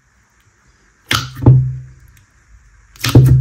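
Thick slime pops with sharp squishes as fingers poke it.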